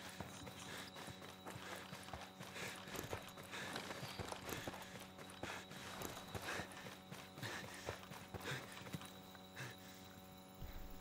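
Footsteps rustle through leaves and undergrowth.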